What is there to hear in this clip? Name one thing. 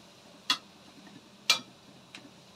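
A metal spoon clinks against a wok.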